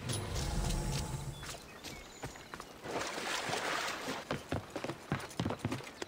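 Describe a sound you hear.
Water splashes around wading feet.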